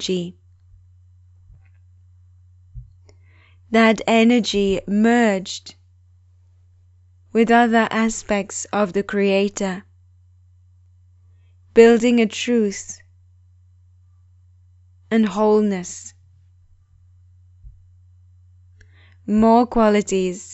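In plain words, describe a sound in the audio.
A woman speaks calmly and slowly into a close microphone, pausing between phrases.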